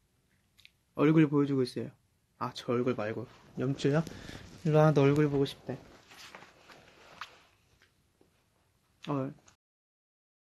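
A young man speaks with animation close to a phone microphone.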